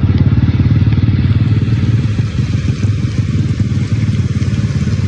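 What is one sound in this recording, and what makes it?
Muddy floodwater rushes and churns steadily.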